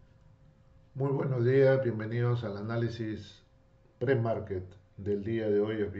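A man speaks calmly into a microphone at close range.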